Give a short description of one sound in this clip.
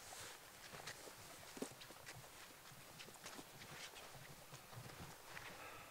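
Footsteps crunch on frosty grass outdoors.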